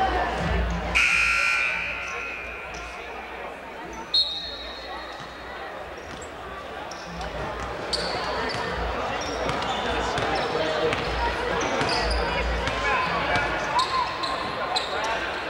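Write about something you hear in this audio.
Sneakers squeak sharply on a wooden gym floor.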